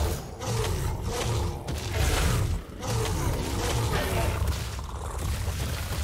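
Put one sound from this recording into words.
A large creature bites and kills fish underwater.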